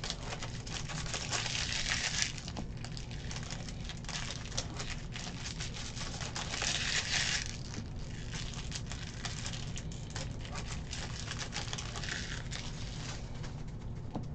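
Foil card wrappers crinkle and tear close by.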